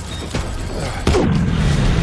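A large explosion roars and rumbles.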